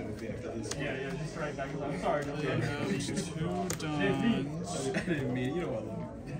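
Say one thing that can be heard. Playing cards rustle and flick as they are shuffled by hand.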